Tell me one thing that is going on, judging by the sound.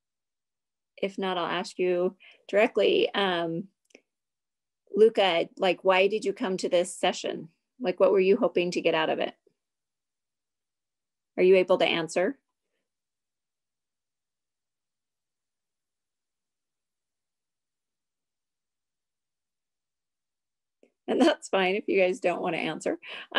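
A middle-aged woman speaks with animation into a close microphone, in bursts with long pauses.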